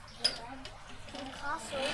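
A young child talks nearby.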